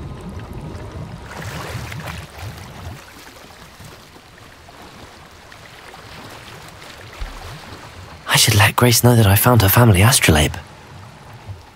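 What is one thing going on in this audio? Water splashes softly as someone swims.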